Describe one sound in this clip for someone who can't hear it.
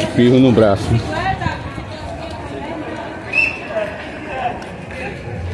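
Several people talk nearby outdoors, men and women, chatting casually.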